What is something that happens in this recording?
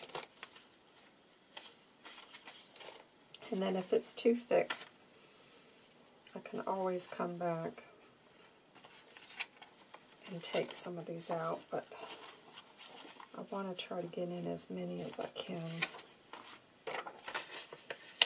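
Paper sheets rustle and shuffle as they are handled.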